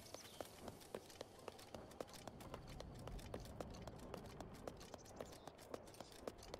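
Quick footsteps thud on wooden logs.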